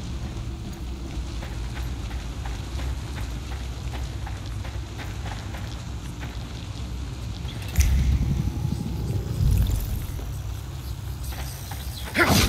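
Heavy footsteps thud on a metal floor.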